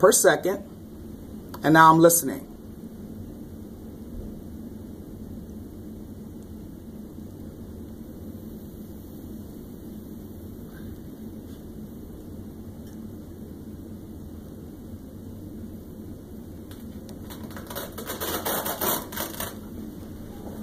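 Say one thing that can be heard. Air hisses softly as a blood pressure cuff slowly deflates.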